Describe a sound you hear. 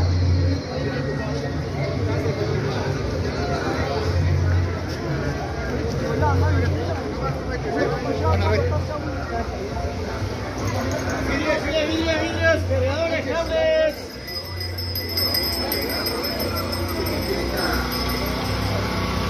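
Many people chatter in a busy street outdoors.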